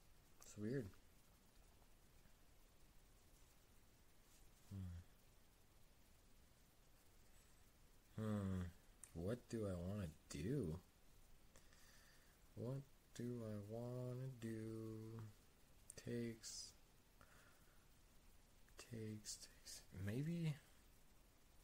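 A man talks calmly and thoughtfully into a nearby microphone, in short bursts.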